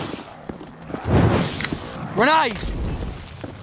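A firebomb bursts into flames with a loud whoosh.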